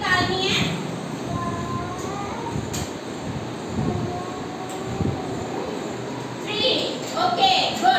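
A young girl speaks in a high voice, reciting.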